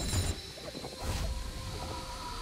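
A beam of energy strikes down with a sharp blast.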